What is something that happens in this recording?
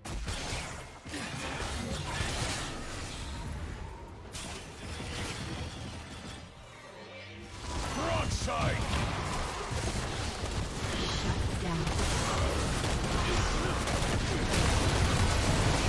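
Game combat sounds of spells whooshing and crackling ring out.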